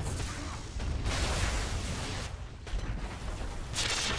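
A magic blast crackles and roars loudly.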